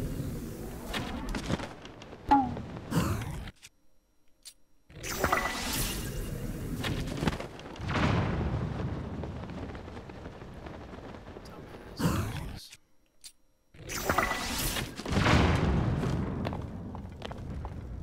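Explosions boom and crackle with fire.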